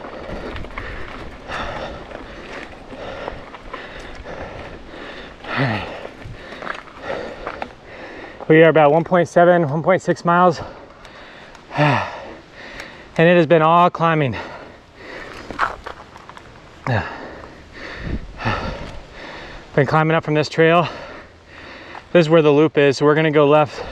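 Bicycle tyres roll and crunch over a dry dirt trail.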